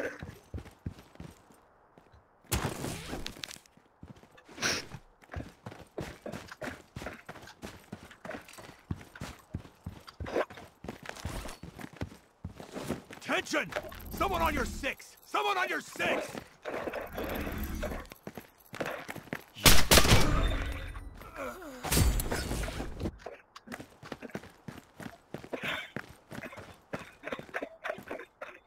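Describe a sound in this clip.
Footsteps tread quickly on hard ground.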